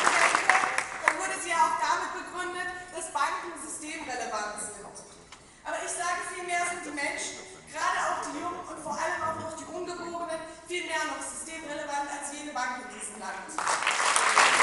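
A woman speaks calmly through a microphone over loudspeakers in a hall.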